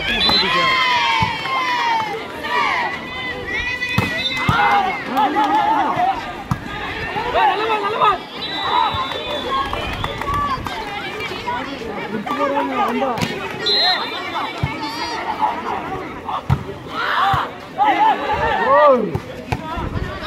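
A volleyball is struck with dull thumps.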